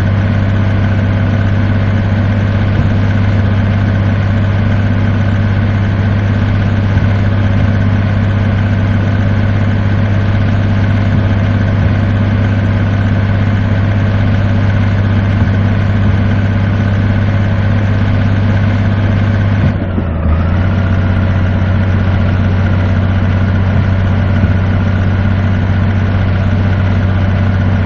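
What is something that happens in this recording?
A truck engine drones steadily, briefly dipping once before settling again.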